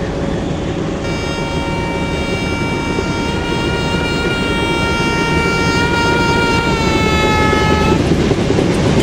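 A train horn blares loudly and drops in pitch as an oncoming train rushes past.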